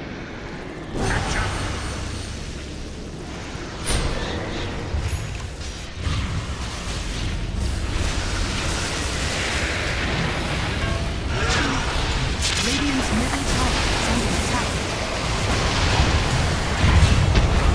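Game spells and weapons crackle and boom in a battle.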